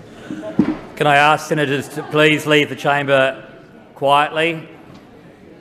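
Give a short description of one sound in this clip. A man speaks firmly through a microphone in a large echoing room.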